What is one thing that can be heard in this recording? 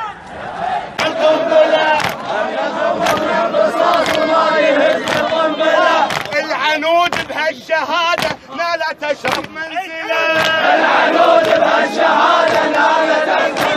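A man shouts slogans forcefully, close by.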